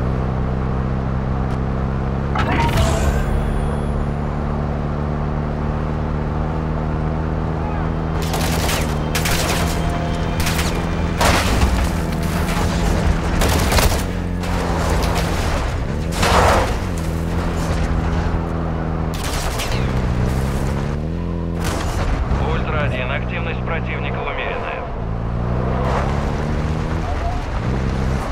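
A truck engine drones steadily, its pitch dropping and rising as it shifts gears.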